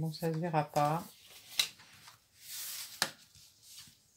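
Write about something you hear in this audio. A sheet of card slides and taps onto a table.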